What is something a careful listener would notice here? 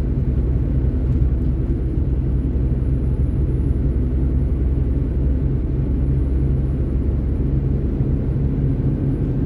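Tyres roll steadily over asphalt.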